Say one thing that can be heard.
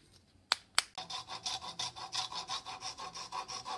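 A hand saw cuts back and forth through a thin wooden dowel.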